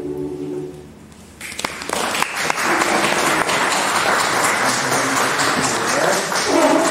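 A choir sings together.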